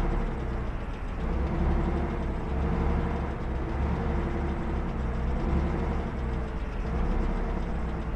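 A tank engine rumbles steadily as it drives along a road.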